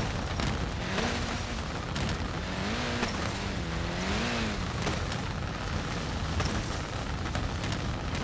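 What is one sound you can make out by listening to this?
Tyres rumble over rough grass.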